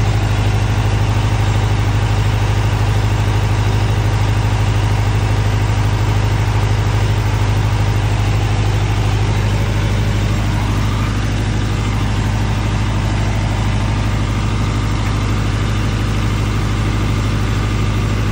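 A diesel generator runs with a deep steady hum.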